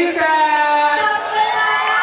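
A young man speaks loudly into a microphone over loudspeakers.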